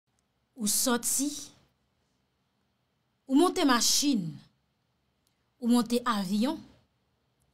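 A young woman speaks expressively into a close microphone in short bursts.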